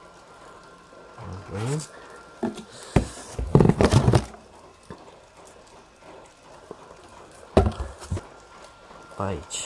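A cardboard box rustles and knocks as it is handled.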